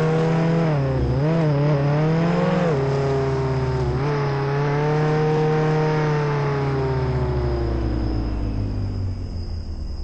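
A video game car engine revs as the car drives.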